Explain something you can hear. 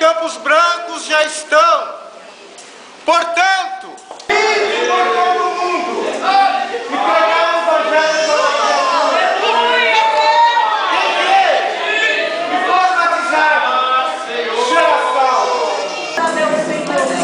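A man sings with strong feeling, heard through a loudspeaker in an echoing room.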